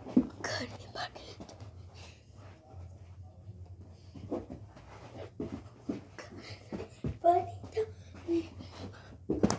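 Bare feet thump and shuffle on a carpeted floor.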